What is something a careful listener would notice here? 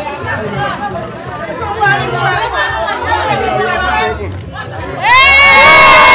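A crowd of people chatter and cheer outdoors.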